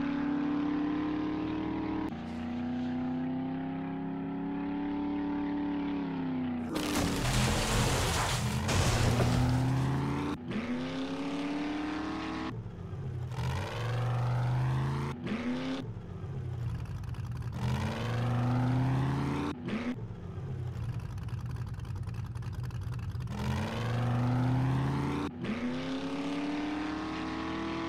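A car engine revs up and down, shifting gears as it drives.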